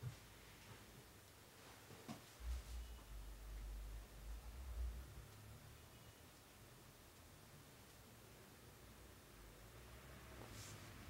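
A small tool rubs and scrapes softly against skin close up.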